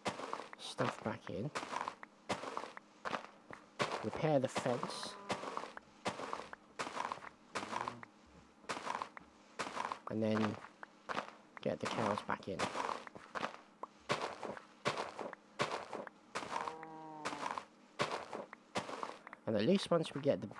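Dirt crunches repeatedly as a shovel digs in quick, even bursts.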